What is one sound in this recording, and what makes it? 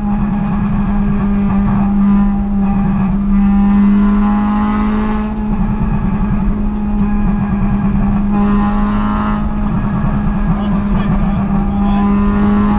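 Tyres roar on a motorway road.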